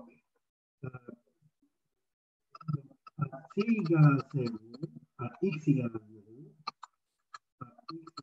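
A man explains calmly through an online call.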